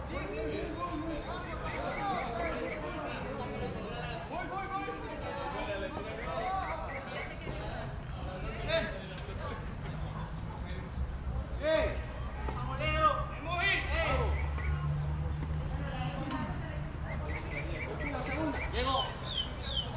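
Young men call out and chatter across an open field.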